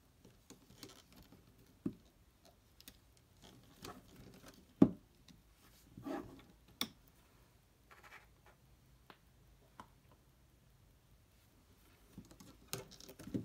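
Rubber bands rustle and snap as they are pulled onto a plastic hook.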